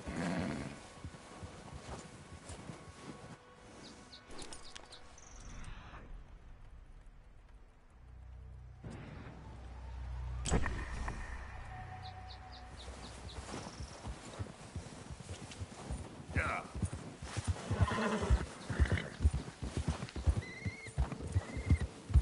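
A horse's hooves crunch steadily through deep snow.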